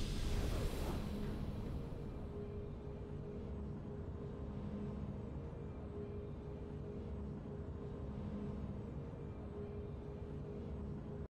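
Soft game music plays steadily.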